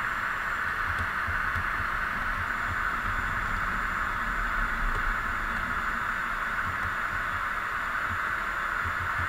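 Tyres roll on a highway with a steady hiss.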